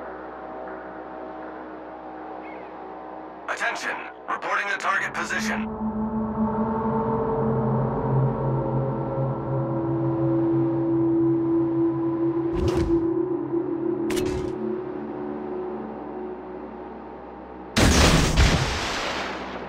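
A warship's engine hums steadily over the sea.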